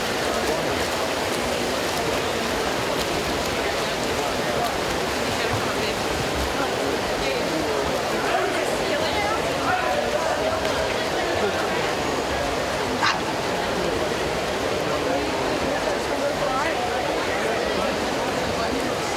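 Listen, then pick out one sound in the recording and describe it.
A crowd cheers and roars in a large echoing hall.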